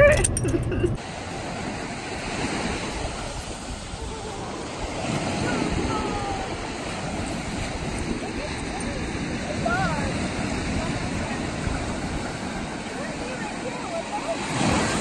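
A young woman laughs and calls out with excitement.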